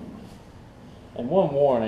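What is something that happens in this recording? A lawn mower's engine is cranked with a pull cord.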